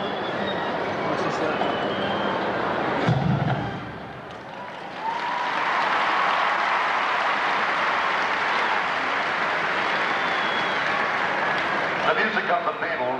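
A large crowd cheers and roars in an open stadium.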